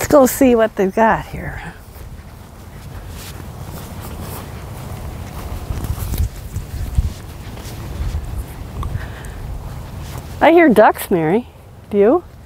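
Footsteps brush through grass.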